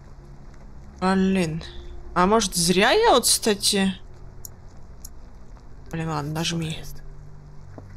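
A young woman speaks with animation into a microphone, close by.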